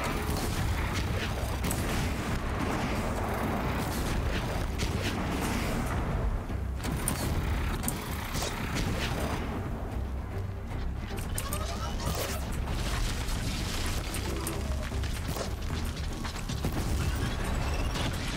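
A large mechanical creature clanks and roars.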